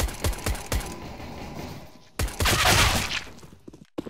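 A silenced pistol fires several quick shots.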